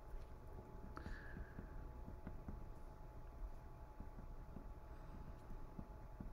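A marker taps softly on paper.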